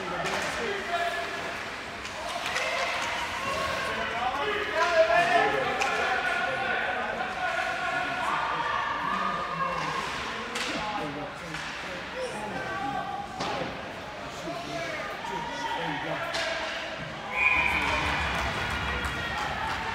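Women talk nearby in an echoing hall.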